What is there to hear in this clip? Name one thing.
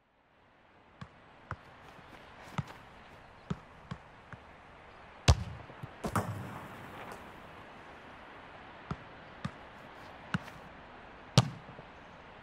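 A football is kicked with sharp thuds, again and again.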